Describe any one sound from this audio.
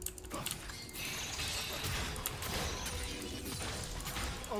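Game combat effects crackle and clash loudly.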